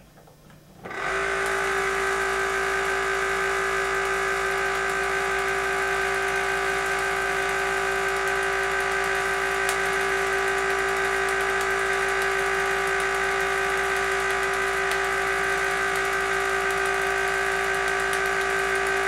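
An electric fan starts and runs with a steady whirring hum.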